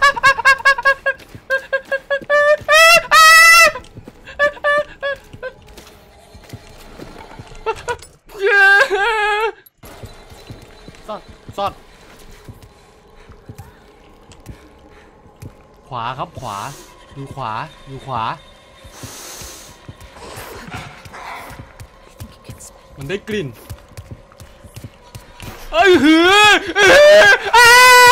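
A young woman talks with animation, close to a microphone, her voice high and sing-song.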